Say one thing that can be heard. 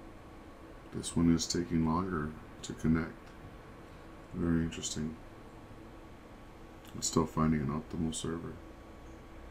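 A man speaks calmly and close to a microphone, in short bursts with pauses.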